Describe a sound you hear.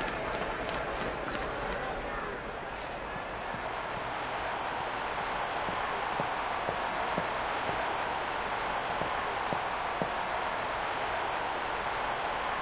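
A large stadium crowd cheers and roars steadily.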